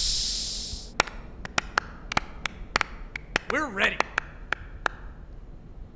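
A few people clap their hands.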